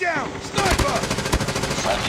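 A rifle fires a burst of rapid shots.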